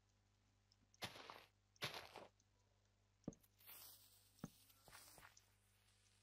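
Short crunching footsteps on gravel and dirt come in bursts.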